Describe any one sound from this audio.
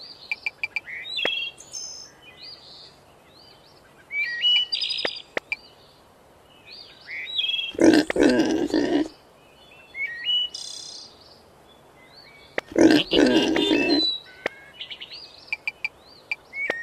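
Bright, cheerful game chimes and pops ring out in quick bursts.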